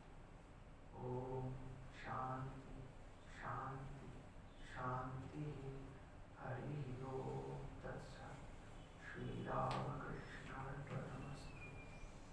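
A man speaks slowly and calmly into a microphone in an echoing hall.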